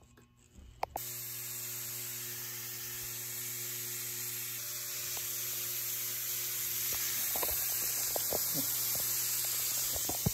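Ground meat sizzles loudly in a hot pan.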